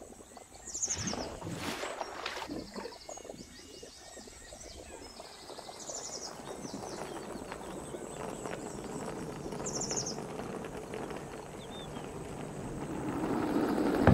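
A plastic tub knocks and rattles as it is carried.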